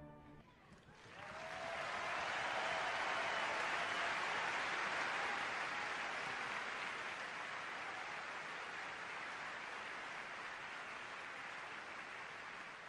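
A large crowd applauds and cheers loudly in a big hall.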